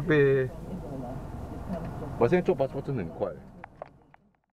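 A man talks calmly inside a car, close by.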